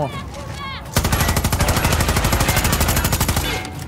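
A heavy gun fires in a rapid, steady burst.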